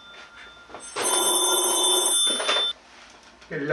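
A phone rings loudly.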